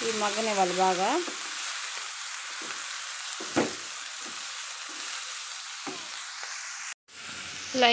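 A wooden spatula stirs and rustles leafy greens in a metal pan.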